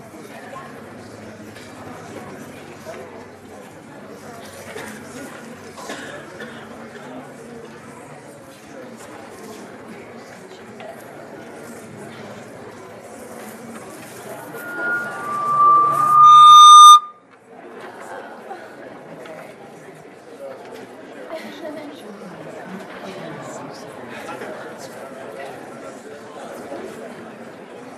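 A large crowd of men and women chatters and murmurs in a big echoing hall.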